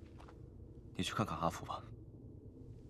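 A young man speaks quietly and calmly, close by.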